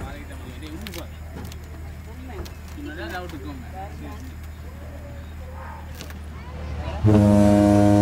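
Several adults talk nearby.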